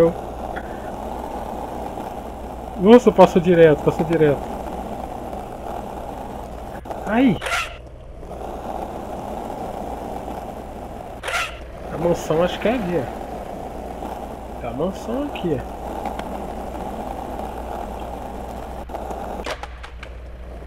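Skateboard wheels roll steadily over pavement.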